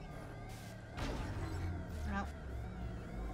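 A young woman speaks quietly close to a microphone.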